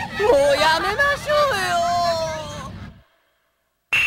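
A young man's voice shouts a long, drawn-out cry with animation.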